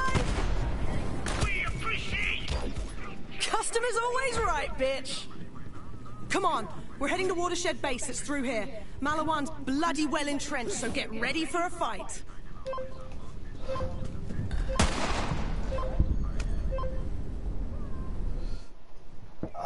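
Gunfire crackles and booms in quick bursts.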